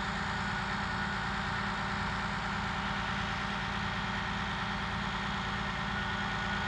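A rail maintenance machine's diesel engine rumbles and hums steadily.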